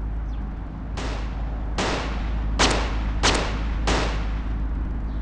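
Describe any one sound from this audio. Gunshots fire in a quick series.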